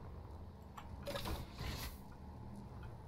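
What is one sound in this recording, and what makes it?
A sliding metal door hisses open.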